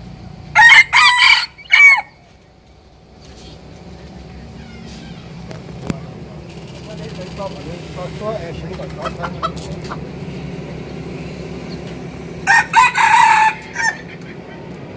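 A rooster crows loudly close by.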